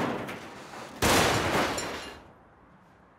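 Metal junk crashes and clatters loudly as a heap bursts apart.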